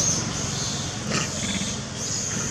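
A monkey calls out with a short, harsh cry.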